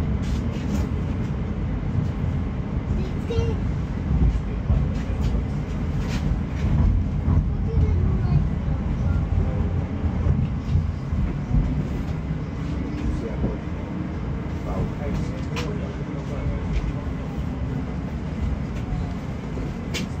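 Wheels clatter and click on the rail joints.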